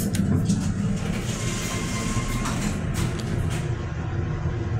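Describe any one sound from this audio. Elevator doors slide shut.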